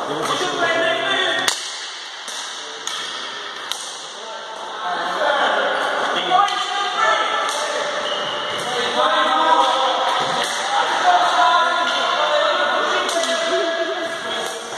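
Players call out to each other across the hall.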